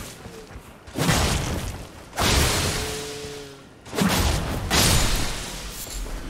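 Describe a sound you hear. A blade slashes with a wet, bursting thud.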